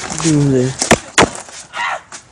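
A skateboard clacks sharply against the ground.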